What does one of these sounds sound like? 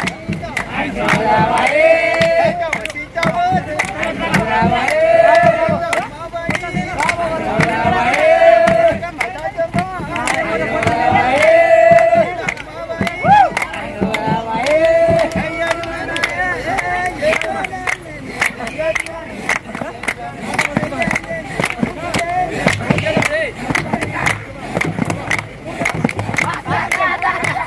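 A crowd claps hands in a steady rhythm.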